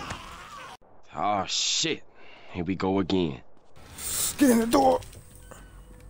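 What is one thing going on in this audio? A zombie groans and snarls loudly.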